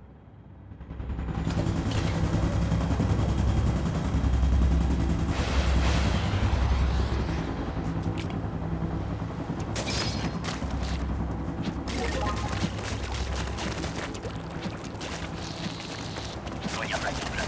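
Upbeat game music plays with a steady thumping beat.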